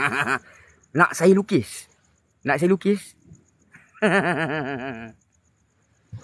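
A young man talks excitedly close to the microphone.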